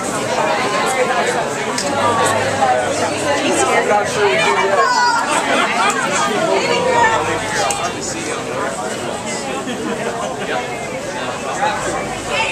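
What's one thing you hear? A dense crowd of men and women chatters loudly all around, close by, in an echoing corridor.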